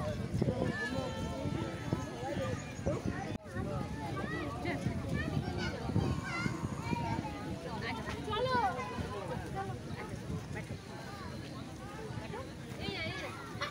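A crowd of people chatters nearby outdoors.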